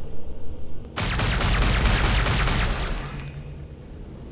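A loud rushing blast roars for about two seconds and then fades.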